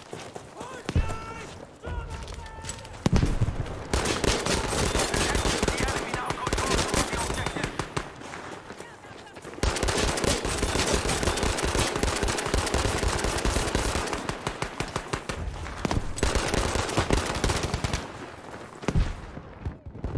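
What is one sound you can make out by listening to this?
Pistol shots crack loudly and sharply.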